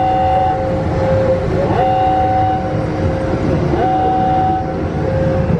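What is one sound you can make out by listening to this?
Car wash machinery hums and whines steadily.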